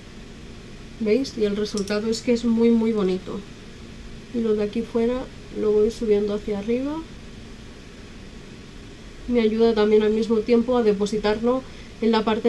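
A woman talks calmly and close to the microphone, in short bursts.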